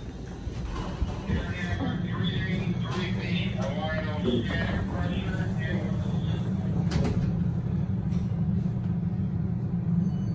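An elevator hums with a steady low drone.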